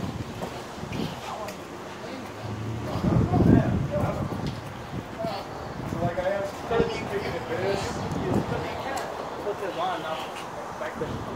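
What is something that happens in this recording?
A middle-aged man talks close to a phone microphone.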